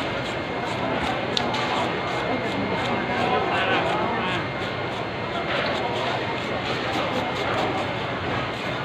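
A knife slices wetly through a large fish.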